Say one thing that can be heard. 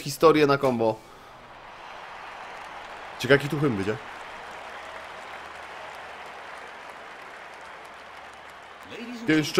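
A stadium crowd cheers steadily in the distance.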